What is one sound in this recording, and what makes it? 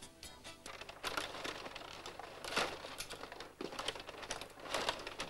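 Plastic table hockey rods clatter and click as players are spun and pushed.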